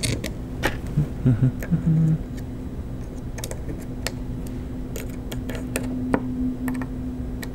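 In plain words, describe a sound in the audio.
Small clicks and light taps sound now and then on a hard surface.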